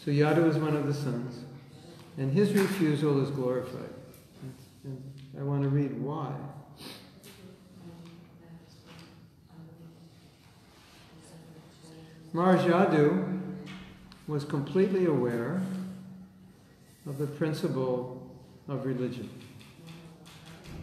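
A middle-aged man speaks calmly and close by, in bursts with pauses.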